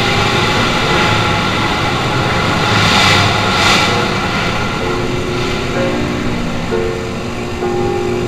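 Many motorcycles ride by, their engines droning.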